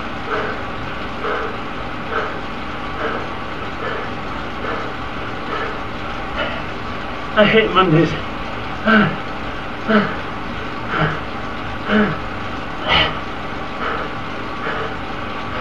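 A man breathes heavily and rhythmically close to a microphone.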